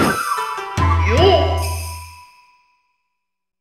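A game menu chimes as a selection is confirmed, then fades out.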